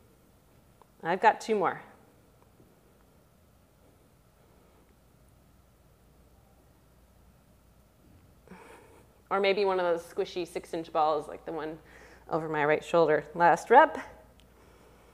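A young woman speaks calmly and clearly, close by.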